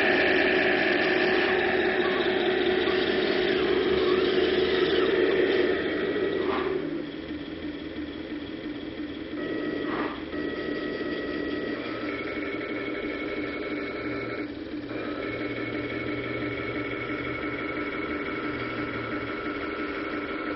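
A small electric motor whines steadily, changing pitch now and then.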